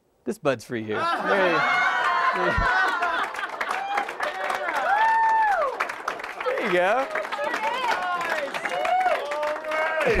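A crowd of young men and women screams and cheers with excitement.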